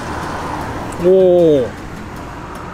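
A man makes an appreciative humming sound while chewing.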